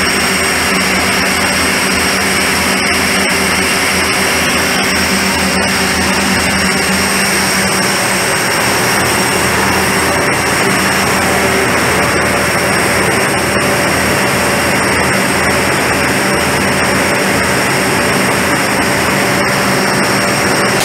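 Industrial machinery hums loudly and steadily nearby.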